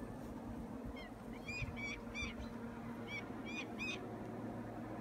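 Birds of prey call out with high, thin cries overhead.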